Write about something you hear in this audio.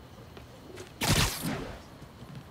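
A loud whoosh rushes past.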